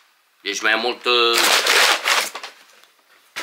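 Paper crinkles and rustles in a man's hands.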